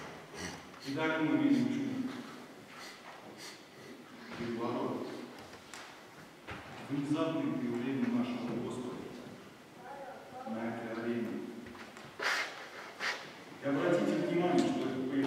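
A middle-aged man speaks calmly into a microphone, with pauses between phrases.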